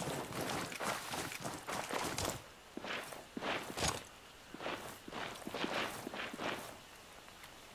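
A rifle fires in sharp bursts.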